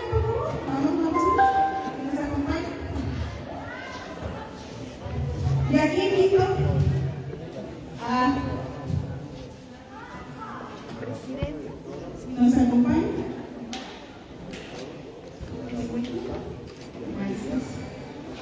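A young woman speaks with animation through a microphone and loudspeaker.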